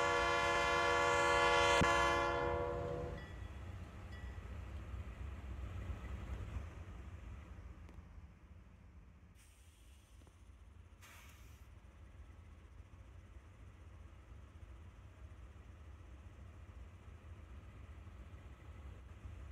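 A diesel locomotive engine rumbles low and steadily.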